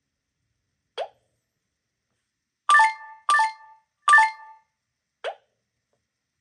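Short swishing game sound effects play.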